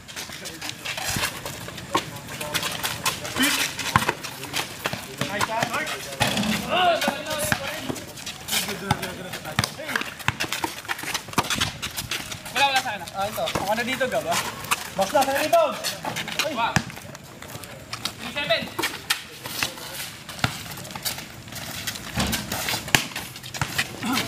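A basketball bounces on an outdoor concrete court.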